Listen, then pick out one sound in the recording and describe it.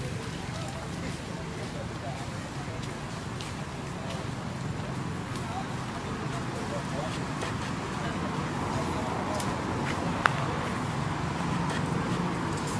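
Leaves and branches rustle as a monkey climbs in a tree.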